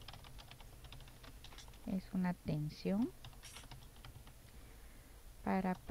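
Keys click quickly on a keyboard.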